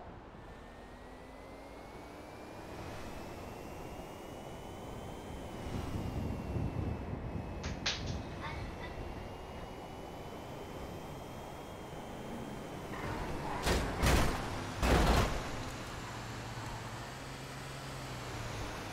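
A car engine whines steadily, rising in pitch as it speeds up.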